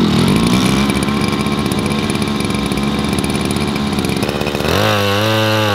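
A small petrol engine idles with a steady buzz.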